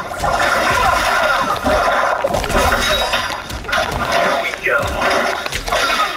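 Water splashes and crashes.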